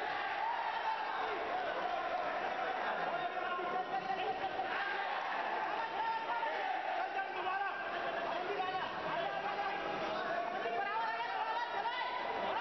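A large crowd chatters and cheers loudly in an echoing hall.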